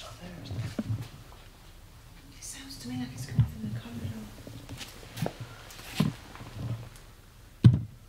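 Several adults talk quietly nearby.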